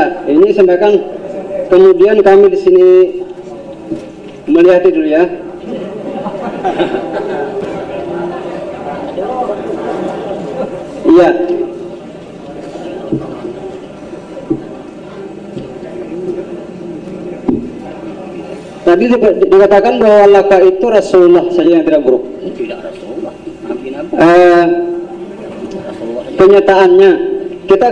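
An elderly man chants loudly into a microphone, with pauses between phrases.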